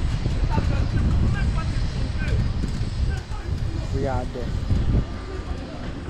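Wind blows and rumbles against the microphone outdoors.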